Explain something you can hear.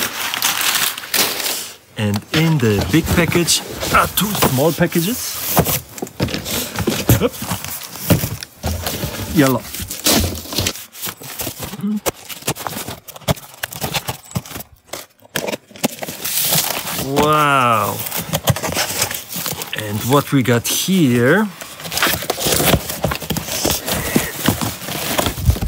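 Cardboard rustles and scrapes as boxes are handled.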